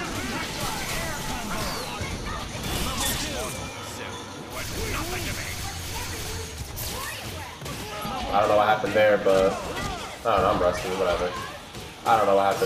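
Punches and kicks land with rapid smacking hits.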